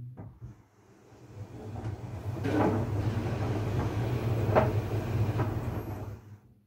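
Laundry tumbles and swishes inside a spinning dryer drum.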